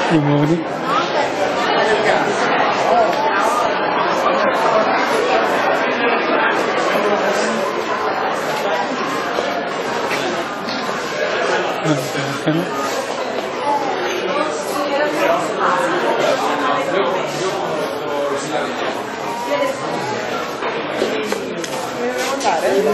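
A crowd of people chatters nearby, echoing in a large indoor space.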